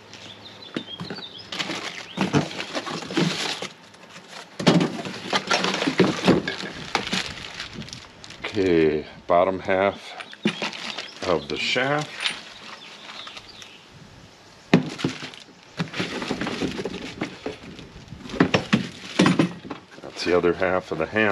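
Cardboard rustles and scrapes as a box is unpacked.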